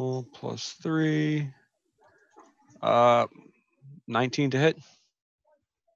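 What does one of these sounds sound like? A man speaks with animation over an online call, his voice rising and falling in bursts.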